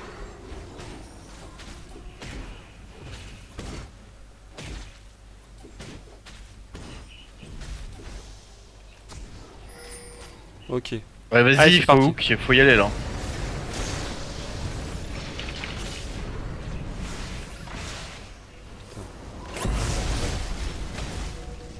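Magic spells zap and crackle in quick bursts.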